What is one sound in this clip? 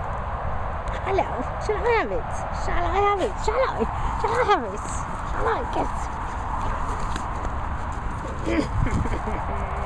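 A dog whines and yelps in high, wavering tones.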